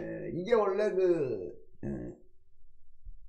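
A man speaks with animation into a close microphone.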